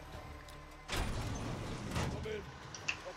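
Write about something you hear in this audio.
A heavy metal door swings open with a loud thud.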